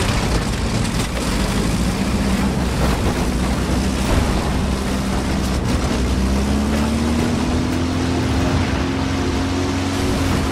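Tank tracks clank and rattle over the ground.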